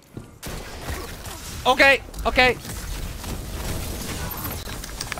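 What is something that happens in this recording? Energy weapons fire and crackle in a fast video game battle.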